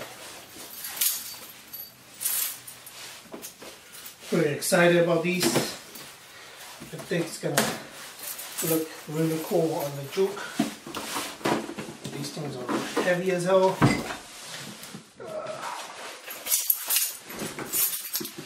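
Cardboard boxes rustle and thump as they are handled.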